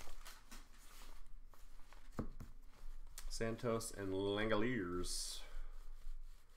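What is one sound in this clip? Trading cards slide and flick against each other in hands.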